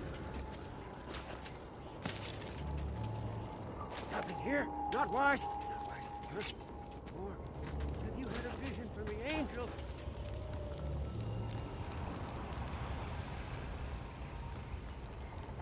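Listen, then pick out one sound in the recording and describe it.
Footsteps crunch over gravel and then thud on wooden boards.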